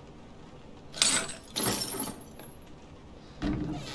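A chain rattles and clinks as it falls away.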